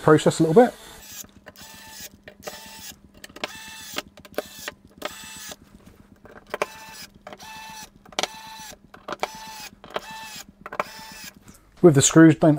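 An electric screwdriver whirs in short bursts as it drives screws.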